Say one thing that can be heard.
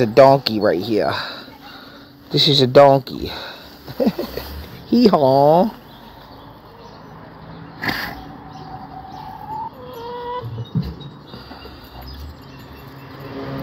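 A donkey snuffles and snorts close by.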